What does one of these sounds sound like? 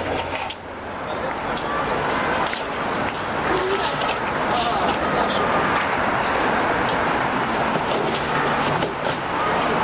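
A busy street hums with distant chatter and traffic.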